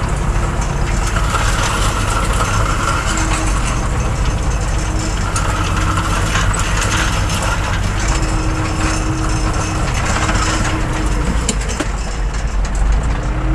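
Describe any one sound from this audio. A tractor cab rattles and vibrates over rough ground.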